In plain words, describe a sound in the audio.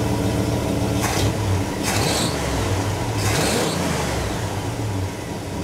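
A car engine revs up sharply a few times and settles back.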